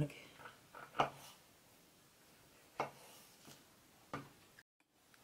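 A knife taps sharply against a wooden board.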